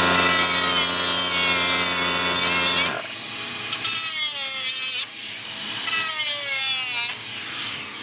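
An angle grinder whines loudly as it cuts through metal.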